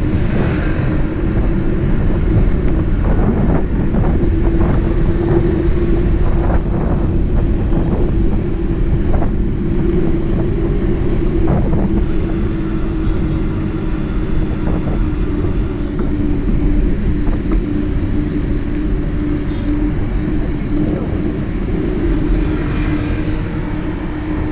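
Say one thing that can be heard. Traffic hums along a busy road.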